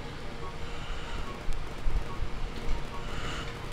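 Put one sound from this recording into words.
A giant spider's legs patter over snow.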